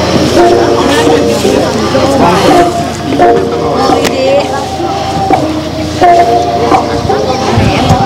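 A crowd of men and women chatter and call out nearby, outdoors.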